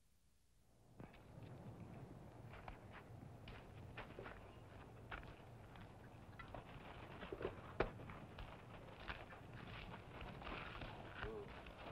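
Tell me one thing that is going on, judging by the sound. Boots crunch on sandy ground as a man walks.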